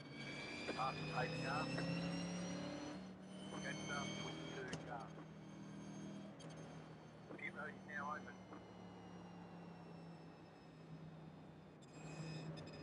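A race car engine hums steadily at low speed.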